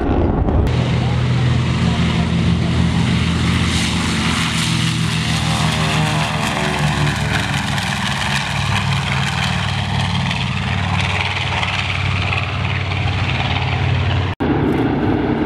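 A propeller plane's engines roar loudly as it takes off and climbs away.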